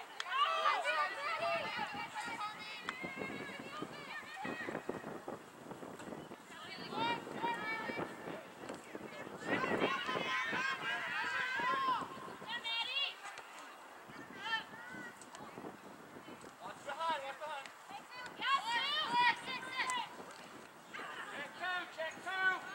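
Spectators on the sideline shout and cheer outdoors, heard from a distance.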